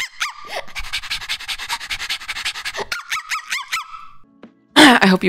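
A young woman laughs in high, squeaky bursts through a microphone.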